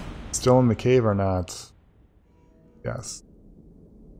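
A man speaks calmly and close into a microphone.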